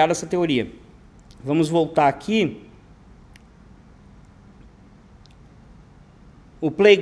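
A middle-aged man speaks calmly into a close microphone, in short bursts with pauses.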